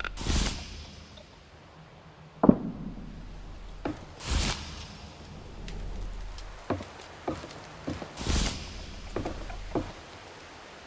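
Footsteps knock on wooden boards.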